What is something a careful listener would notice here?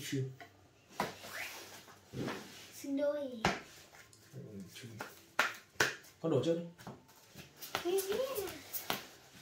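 Playing cards shuffle and slap onto a table.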